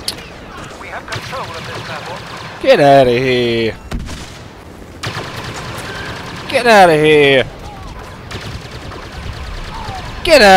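Laser blasters fire in short bursts.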